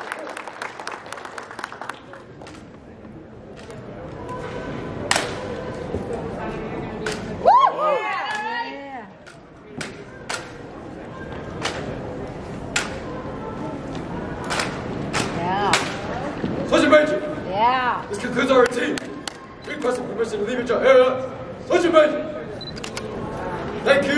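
Rifles slap and click sharply against hands in a large echoing hall.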